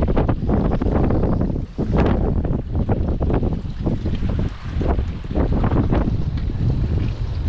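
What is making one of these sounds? Wind rumbles loudly across a close microphone outdoors.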